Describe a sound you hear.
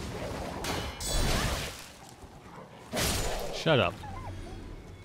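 A sword slashes and strikes.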